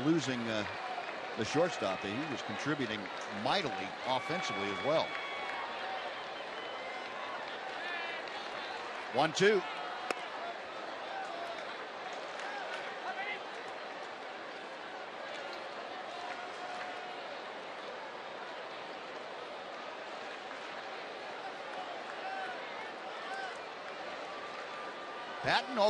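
A stadium crowd murmurs steadily outdoors.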